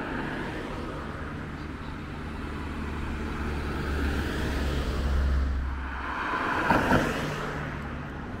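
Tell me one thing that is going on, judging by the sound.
A van drives past close by with a rushing whoosh.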